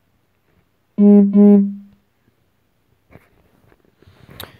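A young woman speaks cheerfully through a small speaker.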